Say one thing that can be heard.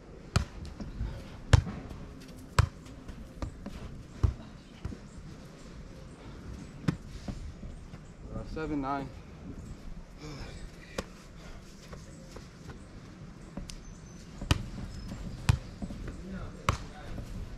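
A volleyball is struck by hand with sharp slaps.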